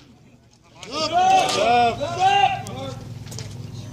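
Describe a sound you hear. A man shouts a call loudly outdoors.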